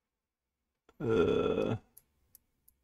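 A man speaks briefly and closely into a microphone.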